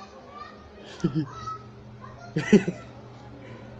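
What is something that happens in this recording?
A young man laughs in short bursts.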